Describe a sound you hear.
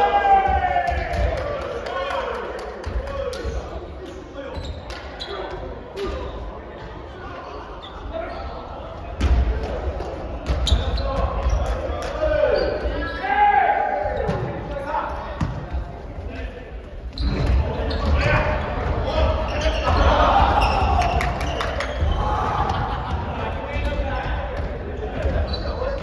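Young men and women call out and shout to each other in a large echoing gym.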